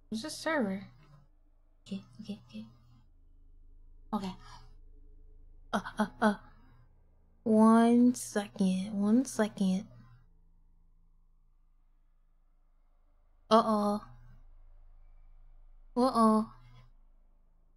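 A young woman talks animatedly into a microphone, in short bursts.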